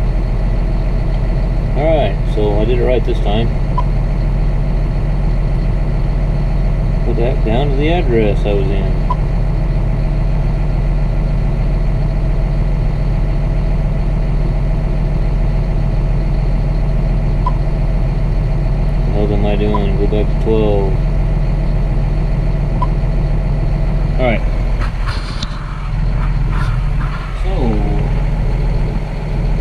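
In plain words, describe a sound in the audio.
A tractor engine drones steadily inside the cab.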